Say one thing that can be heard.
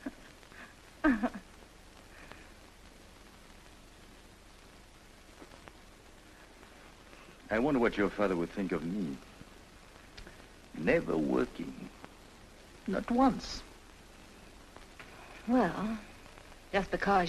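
A man speaks quietly and gently up close.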